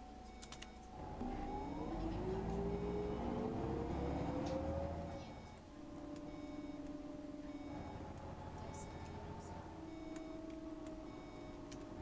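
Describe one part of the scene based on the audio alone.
A bus engine revs up, rising in pitch as the bus pulls away and speeds up.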